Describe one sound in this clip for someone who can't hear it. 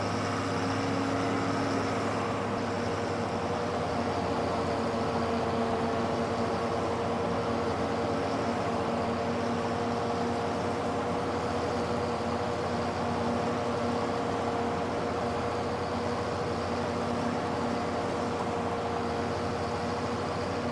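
A mower's blades whir over grass.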